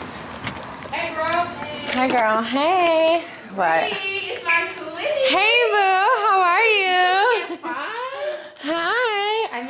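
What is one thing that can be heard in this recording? A woman speaks loudly and excitedly close by.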